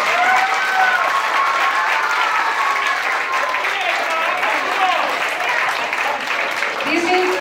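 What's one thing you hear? A crowd cheers and shouts excitedly in a noisy hall.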